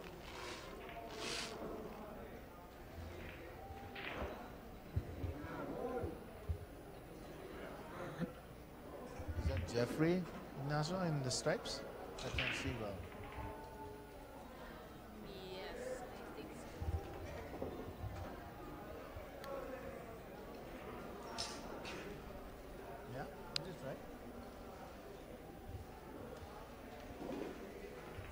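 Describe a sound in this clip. A crowd of spectators murmurs and chatters nearby.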